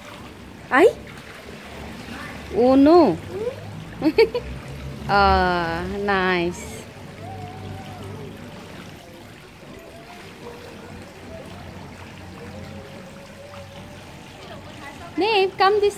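Water splashes softly as a child moves through a pool.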